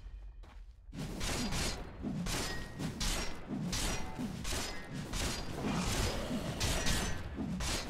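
Weapons clash and strike rapidly in a fight.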